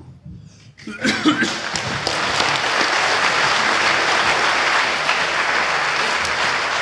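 People clap in applause.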